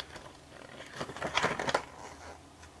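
A calendar page rustles as it is turned.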